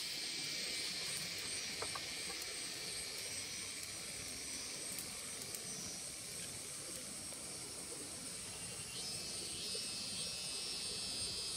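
A small wood fire crackles.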